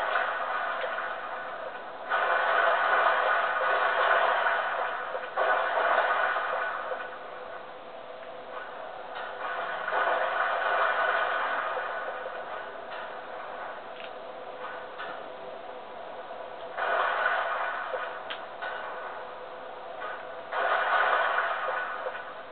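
Muffled game sounds play from a television speaker, swelling in loud rushing bursts.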